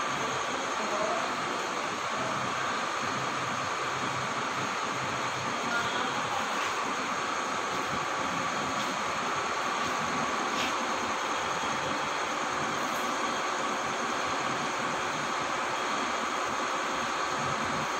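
A bus engine idles steadily nearby with a low hum.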